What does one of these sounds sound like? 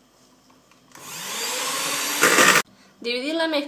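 An electric hand mixer whirs briefly.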